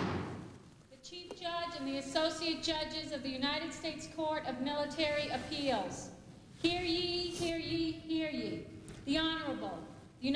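A man calls out in a loud, drawn-out chant in an echoing hall.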